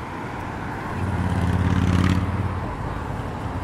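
A motorbike engine drones loudly as it passes close by.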